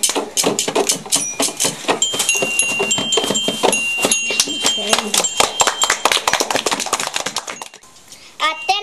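Children shake rattles in a fast, lively rhythm.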